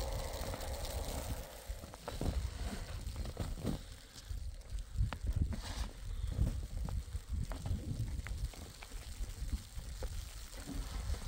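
Wind gusts outdoors with a low rumble.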